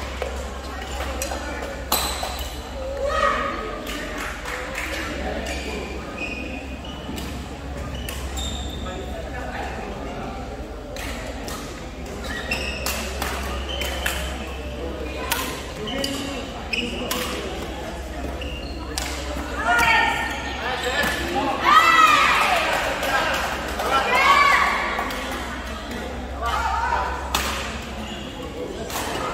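People chatter in the background of a large echoing hall.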